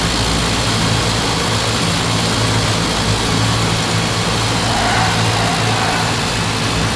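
A vintage Ford Model T engine drones at speed.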